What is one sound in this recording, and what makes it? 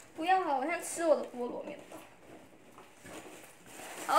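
Fabric rustles as a young woman handles a jacket.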